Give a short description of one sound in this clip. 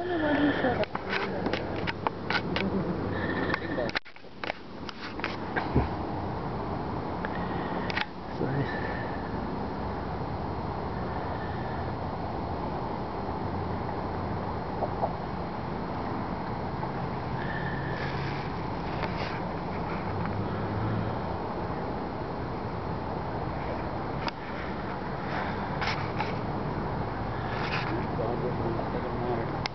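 Water laps gently against a stone wall.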